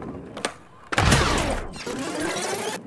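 A skateboarder crashes and thuds onto the floor.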